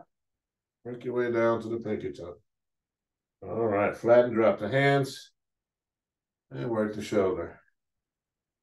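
A man speaks calmly in short phrases, close to a microphone.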